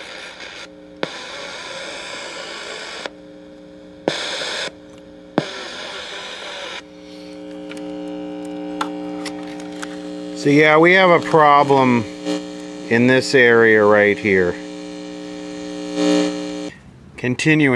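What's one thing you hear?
A radio gives out a steady low hum.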